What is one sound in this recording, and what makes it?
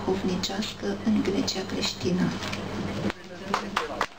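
An elderly woman speaks with animation.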